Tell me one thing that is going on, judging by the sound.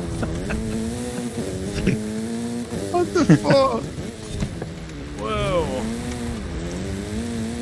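Tyres skid and slide on loose dirt.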